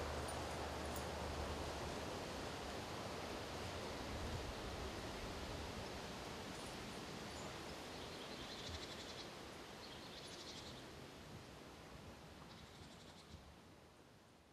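A light breeze blows softly outdoors and slowly fades away.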